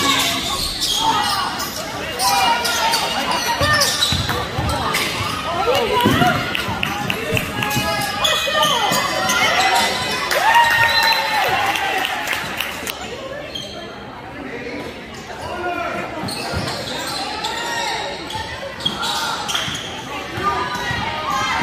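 A basketball bounces on the floor with hollow thuds.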